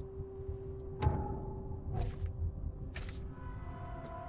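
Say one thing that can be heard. Short clicks sound as game menus open and pages turn.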